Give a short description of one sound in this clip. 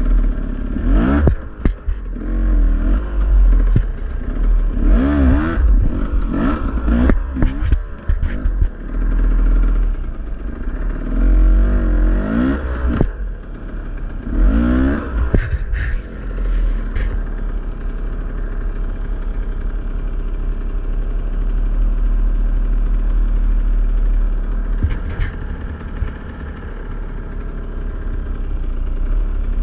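A motorbike engine idles close by with a low rumble.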